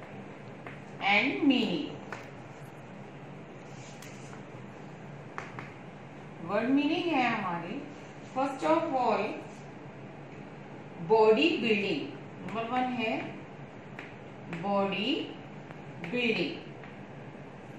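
A woman speaks slowly and clearly nearby, in short phrases.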